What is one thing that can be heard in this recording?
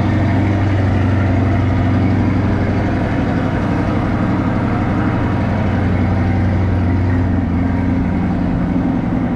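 A sports car engine idles with a deep, steady rumble close by.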